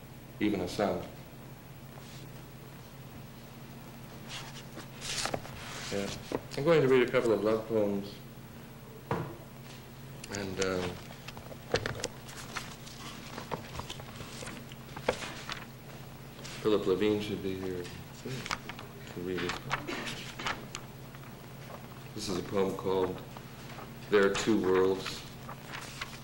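A man reads out slowly and deliberately into a microphone, with long pauses.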